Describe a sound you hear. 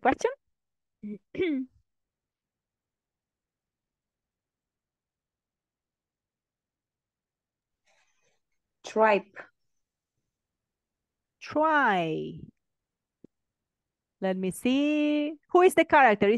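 A woman speaks clearly through an online call, reading out with pauses.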